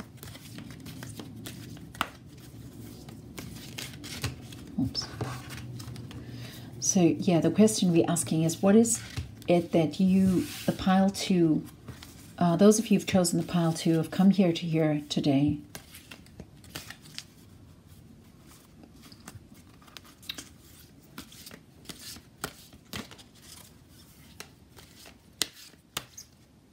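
Playing cards riffle and flick quickly as a deck is shuffled by hand.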